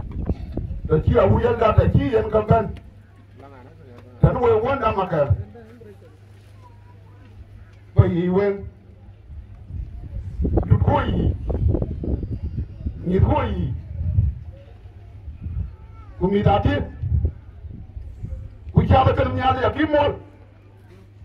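A middle-aged man speaks through a microphone and loudspeaker in short bursts with pauses, outdoors.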